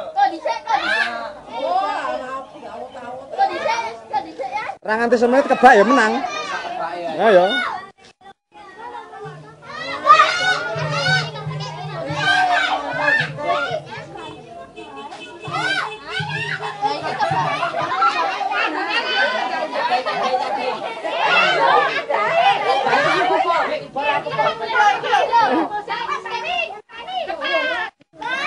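Children chatter and shout excitedly.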